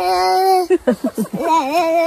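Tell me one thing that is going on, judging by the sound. A young girl laughs nearby.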